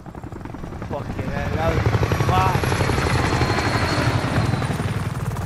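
A helicopter drones overhead.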